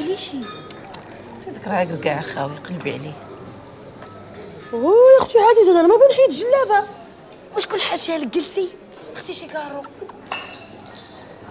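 A young woman answers sharply nearby.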